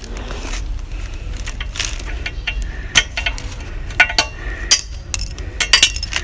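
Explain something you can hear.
A cord rubs and knocks against a metal cart frame as it is tied.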